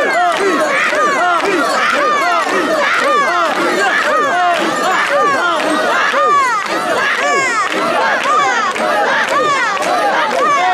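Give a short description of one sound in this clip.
A large crowd of men and women chants loudly in rhythm, close by.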